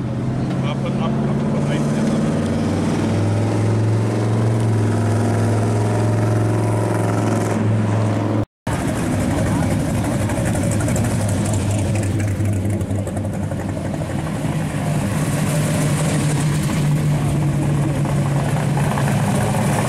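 A powerful car engine rumbles deeply as cars cruise slowly past.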